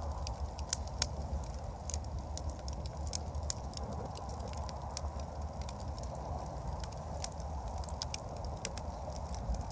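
A wood fire crackles and pops steadily.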